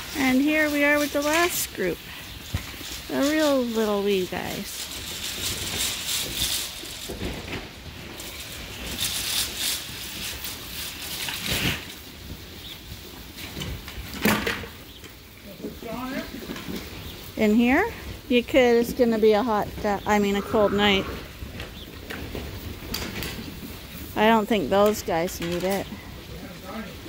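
Lambs bleat loudly and repeatedly close by.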